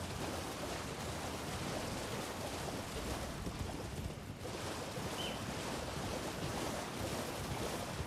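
Hooves splash through shallow water.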